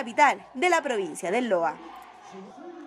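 Young people shout and cheer excitedly close by.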